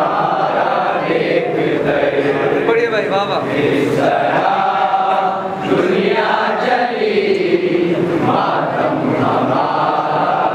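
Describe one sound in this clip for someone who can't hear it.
A young man sings loudly into a microphone through a loudspeaker.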